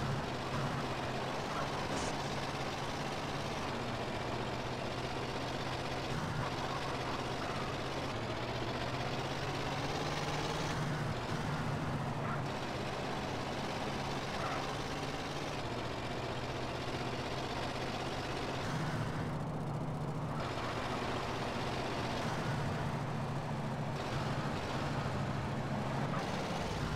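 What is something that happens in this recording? A heavy truck engine drones steadily as it drives along a road.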